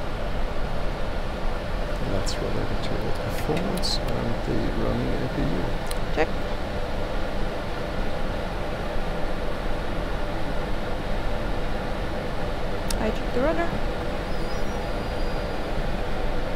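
Jet engines hum and roar steadily.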